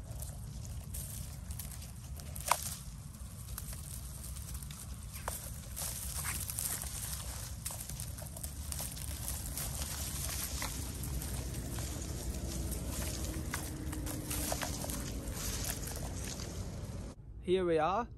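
Dry grain stalks rustle and brush past.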